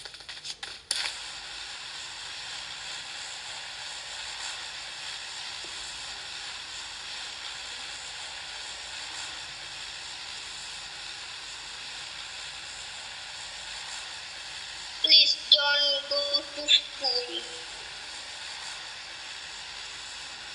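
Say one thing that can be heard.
A plane's engine drones steadily from a small phone speaker.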